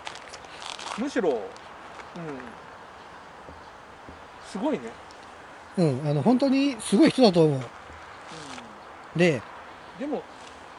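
A man talks close by in short phrases.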